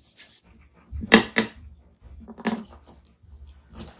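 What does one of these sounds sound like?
A tool is set down on a table with a soft knock.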